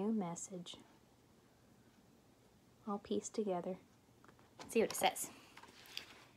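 A young woman reads aloud close by, in a gentle, expressive voice.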